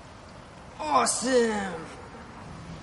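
A young man groans loudly in disgust.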